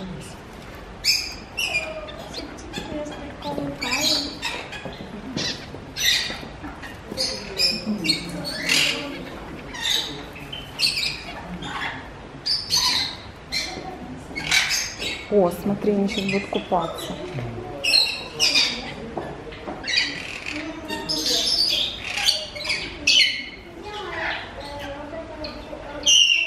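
Small birds chirp sharply and repeatedly close by.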